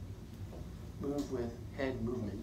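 A man speaks calmly, nearby.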